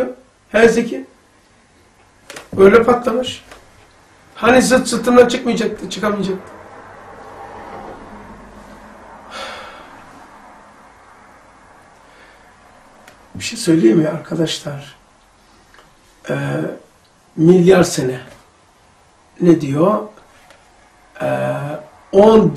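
An elderly man speaks calmly and with emphasis, close to a microphone, pausing between phrases.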